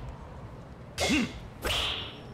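A golf club strikes a ball with a sharp crack.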